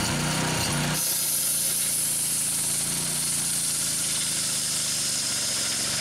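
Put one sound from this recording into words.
A circular saw blade whines as it cuts through wood.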